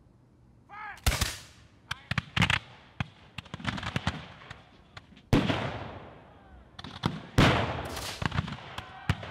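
Muskets fire in loud, sharp volleys.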